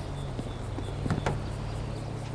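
A car door swings open.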